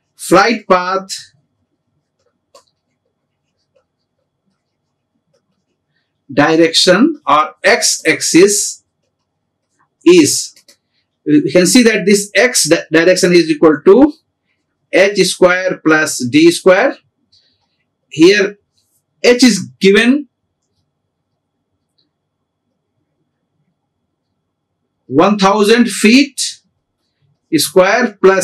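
A middle-aged man speaks calmly and steadily into a close microphone, with pauses.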